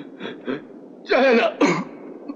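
A man cries out in distress.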